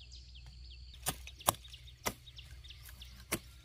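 Dry plant stalks snap as a woman pulls them up.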